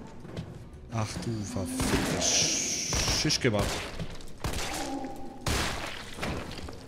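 Pistol shots ring out with echoes.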